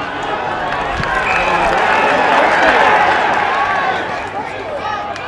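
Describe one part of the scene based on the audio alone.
A crowd in a stadium cheers and roars loudly.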